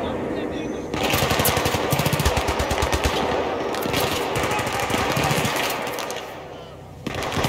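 Gunfire rattles in bursts nearby.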